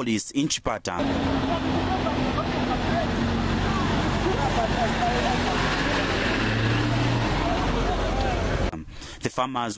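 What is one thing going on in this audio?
A crowd shouts and clamours outdoors.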